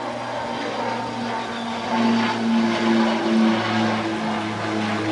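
A propeller plane drones steadily overhead, growing louder as it passes.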